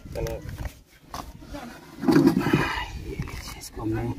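A plastic container scrapes and knocks on a concrete floor.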